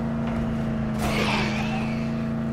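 A car thuds into a body.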